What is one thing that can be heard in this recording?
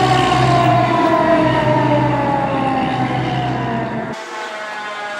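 A fire truck's engine rumbles as it drives past.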